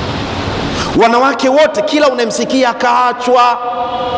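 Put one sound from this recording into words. A man preaches loudly and passionately into a microphone.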